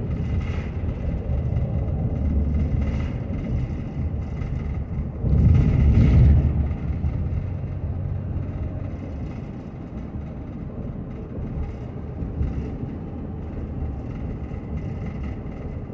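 A car engine hums steadily as the car drives along a road.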